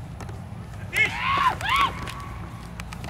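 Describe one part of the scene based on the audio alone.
Young men shout and cheer outdoors in the distance.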